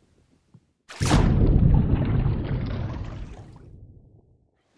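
Water splashes and rushes, then fades.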